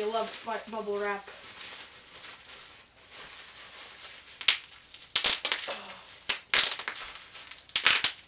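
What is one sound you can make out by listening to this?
Plastic wrapping crinkles and rustles in a boy's hands.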